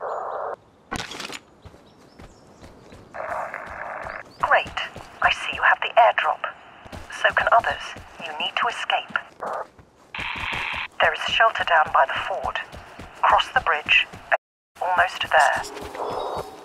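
Footsteps thud quickly on a dirt path.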